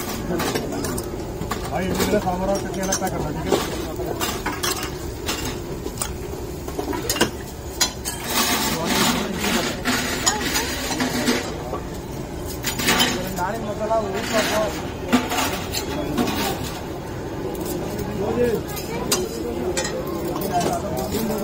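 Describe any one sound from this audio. A metal ladle clinks against the rim of a pan.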